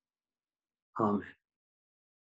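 An older man says a word into a microphone.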